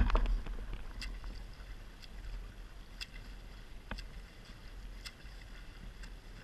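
A swimmer's arms splash through the water in a steady rhythm.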